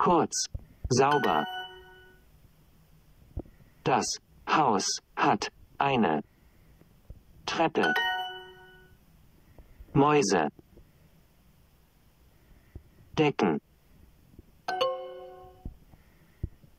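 A phone app plays a short chime.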